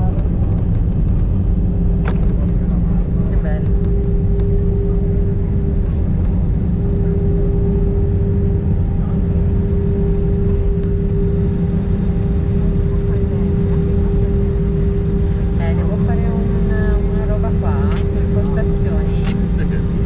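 Jet engines roar loudly and steadily from inside an aircraft cabin.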